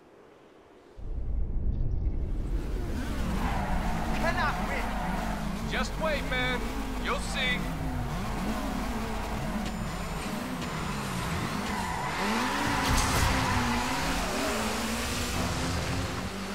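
Car engines rev and roar, rising and falling in pitch.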